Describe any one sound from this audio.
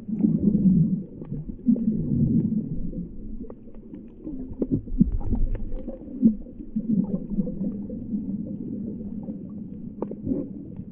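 Water sloshes and rumbles, heard muffled underwater.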